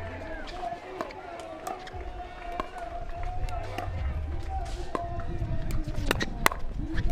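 Pickleball paddles hit a plastic ball in a quick rally.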